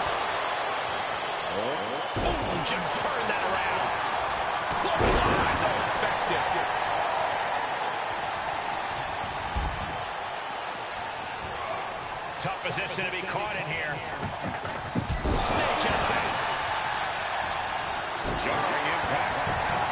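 A large crowd cheers and roars steadily.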